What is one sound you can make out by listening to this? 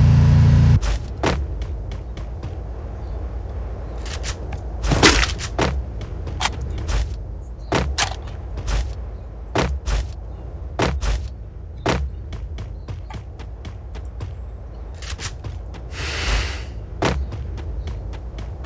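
Footsteps thud quickly on grass as someone runs.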